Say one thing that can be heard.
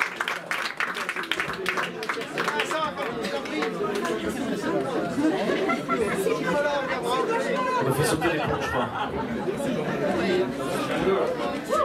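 A live band plays music loudly.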